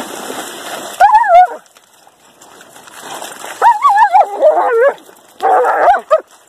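Dogs growl and yelp as they play-fight.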